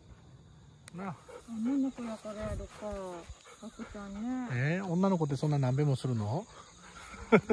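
A woman talks to dogs in a high, animated voice close by.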